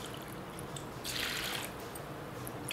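Water pours from a metal cup into a pot.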